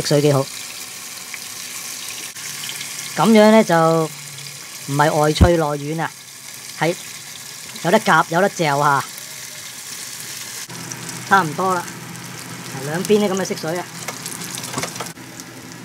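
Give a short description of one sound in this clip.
Chopsticks tap against a pan.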